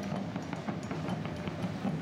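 Drums beat steadily nearby.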